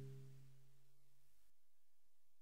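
A man sings a held note into a microphone.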